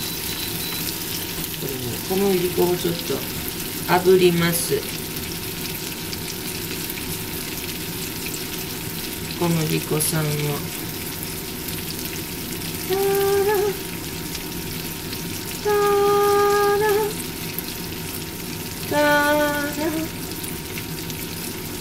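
A spatula scrapes against a frying pan.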